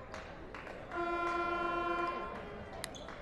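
A referee's whistle blows once, loud and steady.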